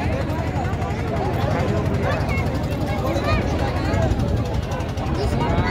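A large crowd of men and women chatters loudly outdoors.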